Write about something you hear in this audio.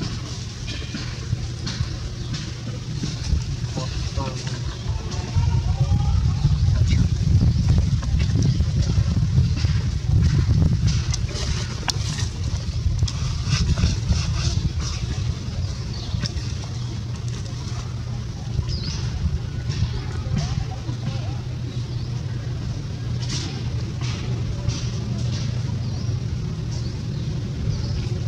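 A baby monkey suckles with soft smacking sounds.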